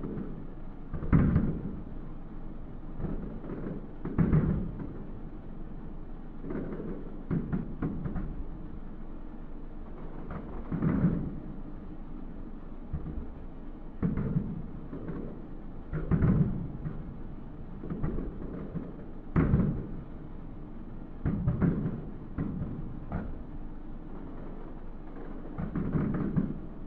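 Fireworks boom and crackle in the distance, again and again.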